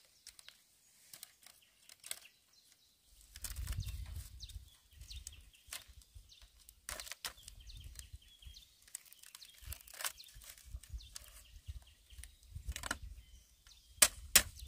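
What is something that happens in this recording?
Dry bamboo strips clatter and scrape as they are woven by hand.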